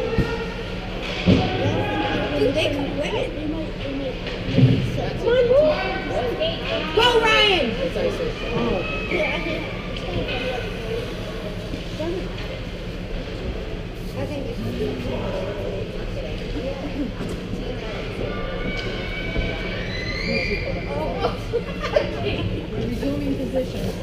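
Young players shout in a large echoing rink.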